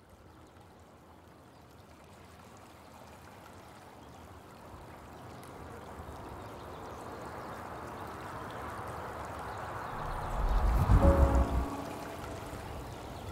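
Water rushes and splashes over rocks.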